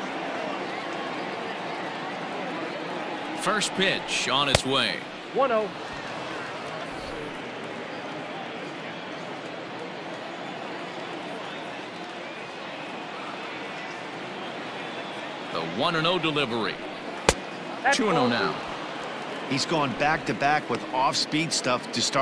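A large crowd murmurs steadily in a big stadium.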